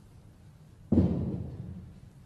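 A cue strikes a snooker ball with a sharp knock.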